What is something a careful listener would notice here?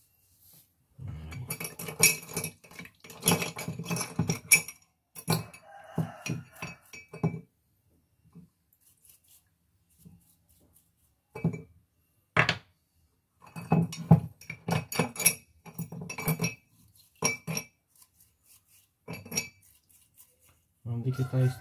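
A screwdriver clicks and scrapes against small metal parts.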